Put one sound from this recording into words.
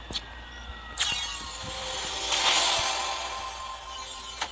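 A game treasure chest opens with a sparkling chime.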